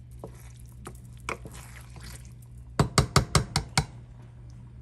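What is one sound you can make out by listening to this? A wooden spoon stirs and knocks against a pot.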